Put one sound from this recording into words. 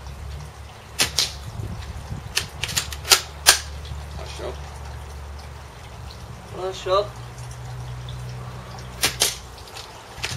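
An air rifle fires with sharp pops.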